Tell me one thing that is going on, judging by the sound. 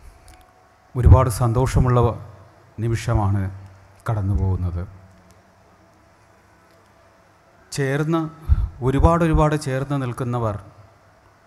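A man speaks firmly through a microphone, his voice carried over loudspeakers.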